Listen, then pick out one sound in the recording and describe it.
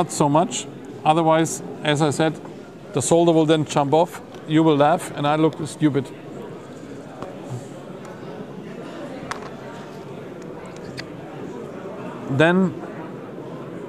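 A middle-aged man speaks calmly and clearly close by.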